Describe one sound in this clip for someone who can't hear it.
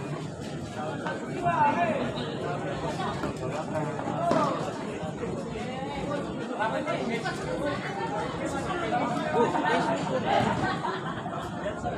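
A crowd of spectators murmurs and shouts throughout.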